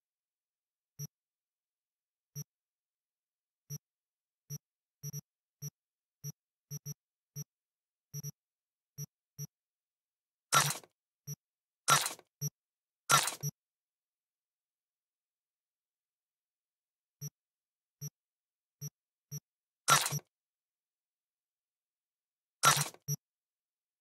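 Soft game menu clicks tick as selections move.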